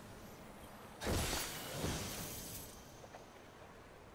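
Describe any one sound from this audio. A metal chest hisses and clanks open.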